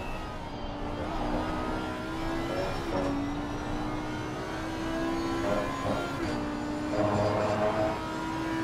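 A racing car engine roars at high revs, rising in pitch and dropping briefly at each gear change.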